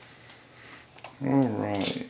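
A stove knob clicks as it turns.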